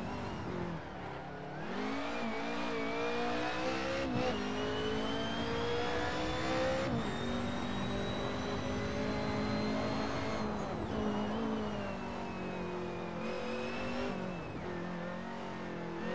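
A racing car engine revs hard, rising in pitch and dropping sharply on each gear change.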